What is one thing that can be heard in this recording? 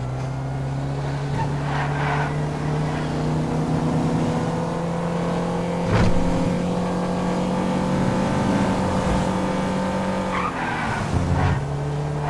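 Tyres screech on asphalt as a car drifts around corners.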